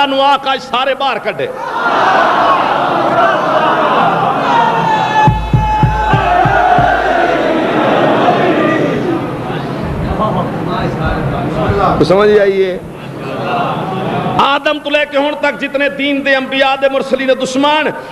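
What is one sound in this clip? A man speaks forcefully into a microphone through loudspeakers, his voice echoing.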